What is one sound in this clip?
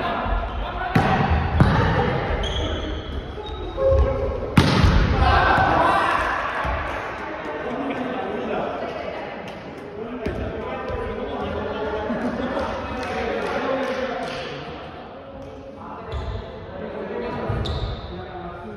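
A volleyball is hit with sharp slaps in a large echoing gym.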